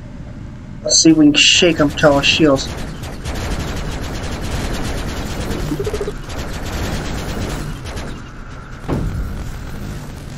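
Laser blasts zap in quick bursts.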